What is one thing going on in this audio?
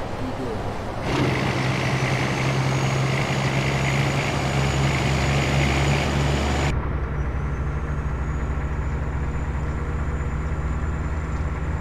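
Tyres roll and rumble on the road.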